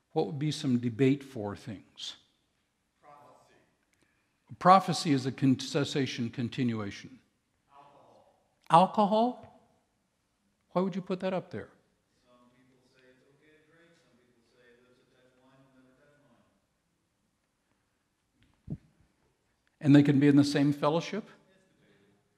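A man speaks calmly into a microphone in a large hall, pausing often.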